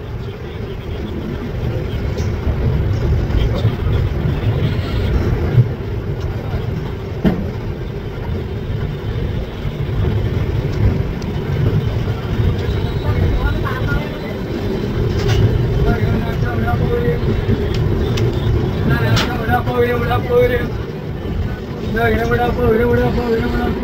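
A train rumbles and clatters slowly along the tracks.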